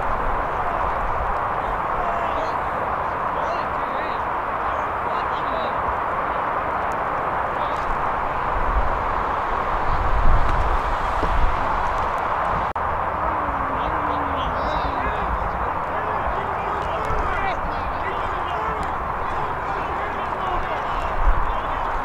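Young players shout to one another at a distance.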